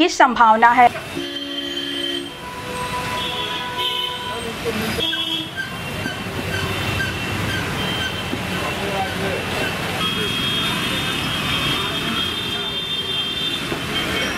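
Motorbikes and rickshaws hiss past on a wet road.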